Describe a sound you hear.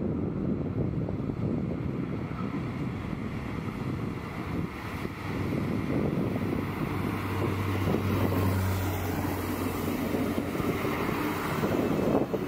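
A diesel train pulls in close by with a deep engine rumble.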